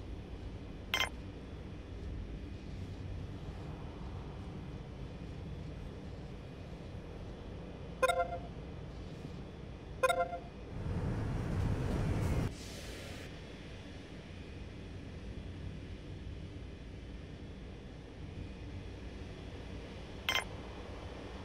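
An interface click sounds.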